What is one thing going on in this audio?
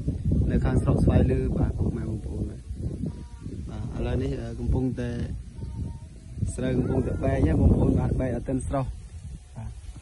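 Wind gusts roar against the microphone outdoors.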